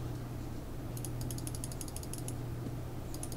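Rapid clicking game attack sounds crackle in quick bursts.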